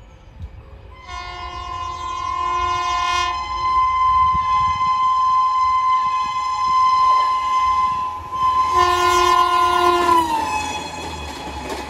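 A train horn blares loudly and long, then drops in pitch as it passes.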